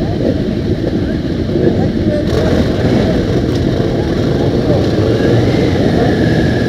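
Many motorcycle engines idle and rumble close by.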